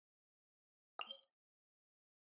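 A short chime clicks.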